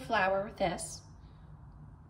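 Flour slides softly from a scoop.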